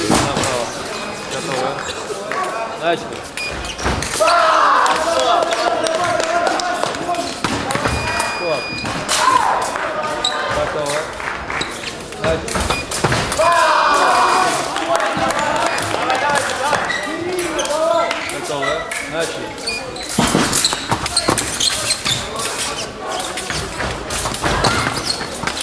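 Feet stamp and shuffle on a fencing strip.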